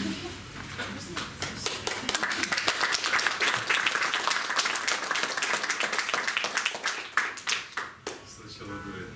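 An audience claps loudly.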